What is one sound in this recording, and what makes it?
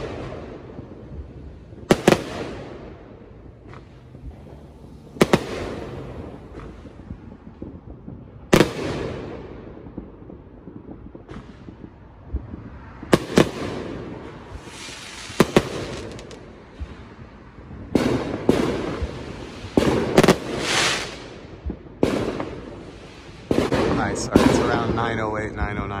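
Fireworks crackle and fizzle after bursting.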